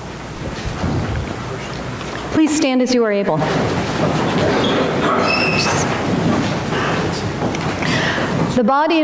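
A congregation sings together softly.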